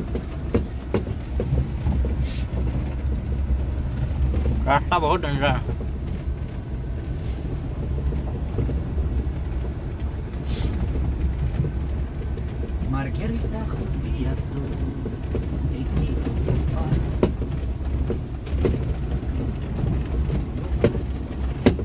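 A car jolts and rattles over a bumpy dirt track.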